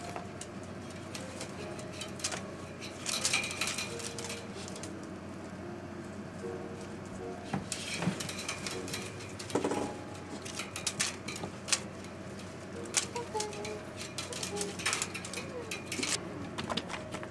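Wire cage bars rattle and clink as a cat bats at a hanging toy.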